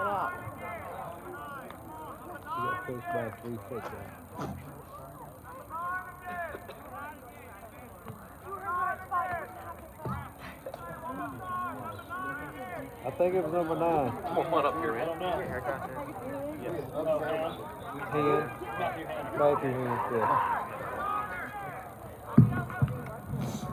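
Young men shout and call to each other outdoors, heard from a distance.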